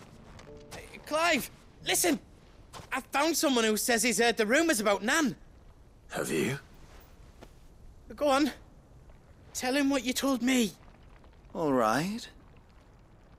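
A young man speaks in short replies, close by.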